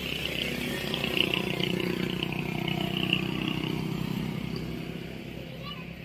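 A motorcycle rides past.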